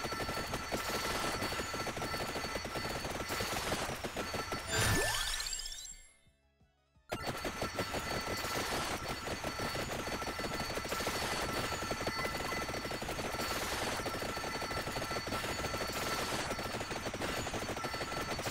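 Rapid game sound effects of weapons and hits chatter constantly.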